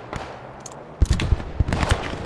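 A rifle bolt clicks and slides metallically.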